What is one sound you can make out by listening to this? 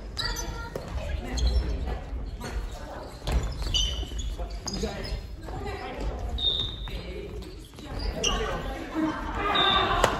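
Young people call out and shout in a large echoing hall.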